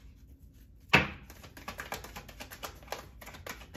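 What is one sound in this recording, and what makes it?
Playing cards are shuffled, flicking and riffling quickly.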